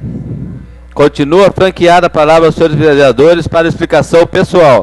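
A man speaks loudly and formally into a microphone.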